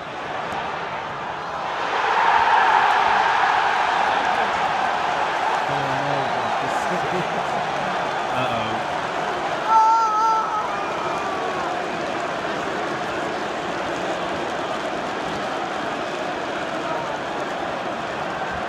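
A large stadium crowd roars and chants loudly all around, outdoors.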